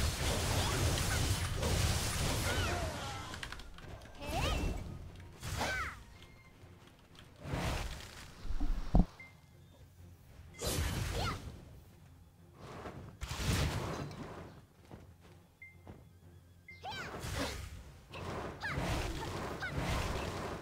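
Magic blasts whoosh and crackle in short bursts.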